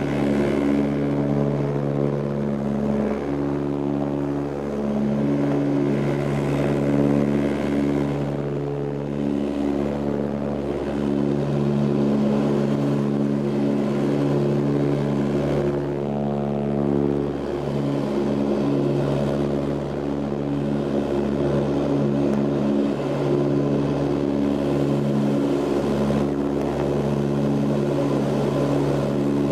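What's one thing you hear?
Propeller engines drone loudly and steadily, heard from inside an aircraft cabin.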